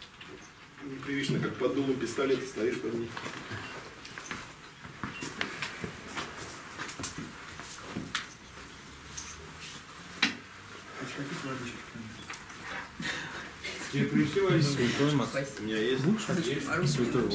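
A man speaks calmly into a microphone in a room with a slight echo.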